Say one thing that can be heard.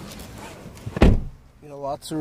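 A car door shuts with a solid thud.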